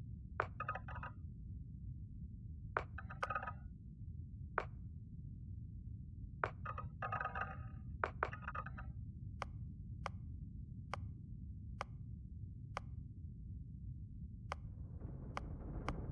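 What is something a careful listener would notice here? Short interface clicks tick as menu options change.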